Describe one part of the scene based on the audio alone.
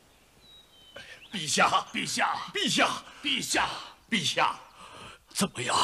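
A woman speaks loudly and sharply nearby.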